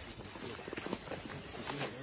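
Feet rustle through leafy undergrowth.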